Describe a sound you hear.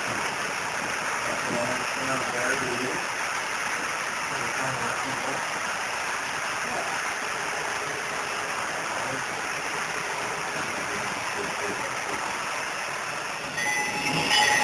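A model train clatters steadily along the track.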